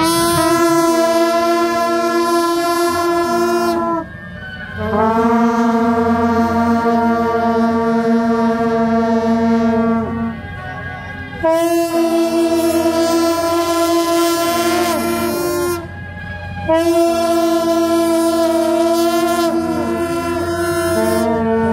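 Long brass horns blare loud sustained notes outdoors, in long held phrases with short breaks.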